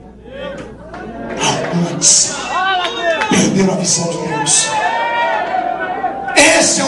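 A man preaches with passion into a microphone, his voice filling a large hall.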